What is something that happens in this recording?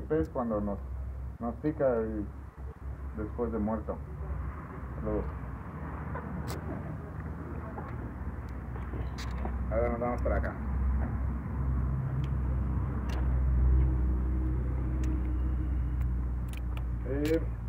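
A young man talks calmly, close by.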